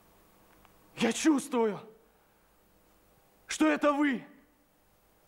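A young man speaks clearly and with feeling, close by.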